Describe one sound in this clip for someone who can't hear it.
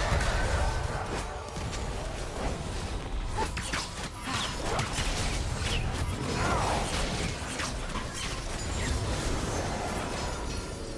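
Game spell effects whoosh and zap in quick bursts.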